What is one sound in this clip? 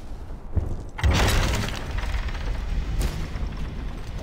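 A heavy wooden gate creaks open.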